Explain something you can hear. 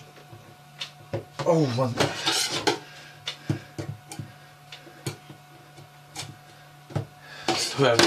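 Metal utensils clink against pans in a sink.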